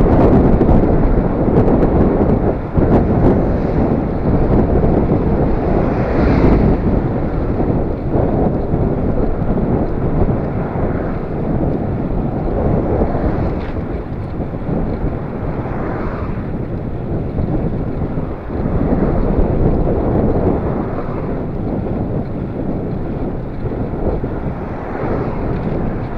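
Cars pass by on the road.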